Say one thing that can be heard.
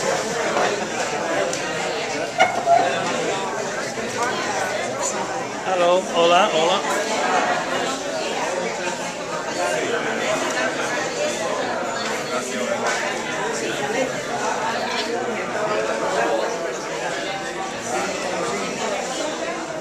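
A crowd of men and women chatter all around in a busy room.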